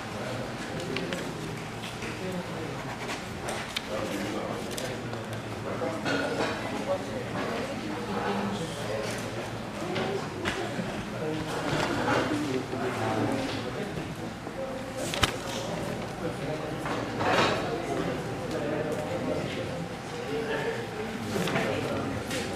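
Paper pages rustle as a man flips through them.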